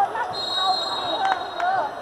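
A volleyball bounces on a hard floor.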